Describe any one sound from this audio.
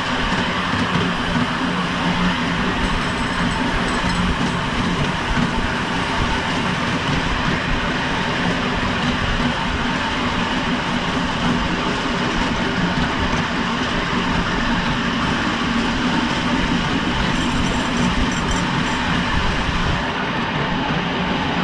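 Train wheels rumble and clatter on the track.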